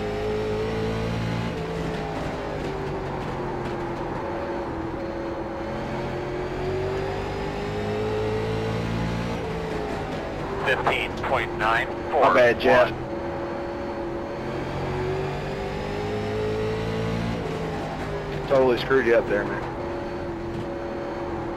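A race car engine drones steadily, its pitch rising and falling with speed.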